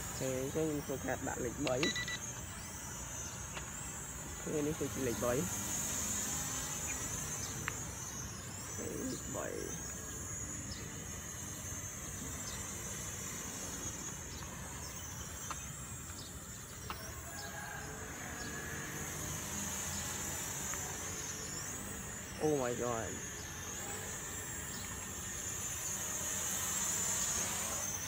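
A drone's motors whine steadily overhead, rising and falling slightly in pitch.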